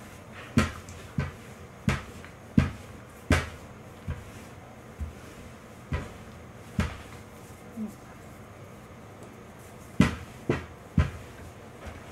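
A rolling pin thumps and knocks on a wooden board.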